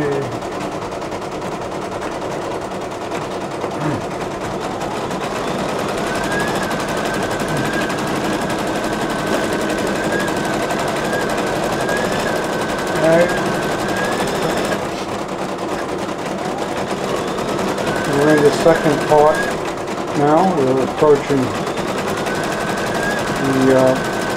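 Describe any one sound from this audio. An embroidery machine hums and whirs steadily as its needle stitches rapidly.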